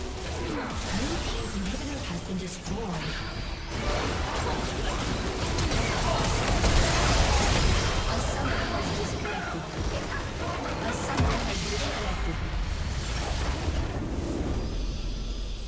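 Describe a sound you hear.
Spell effects and clashing fight sounds burst and crackle in a busy game battle.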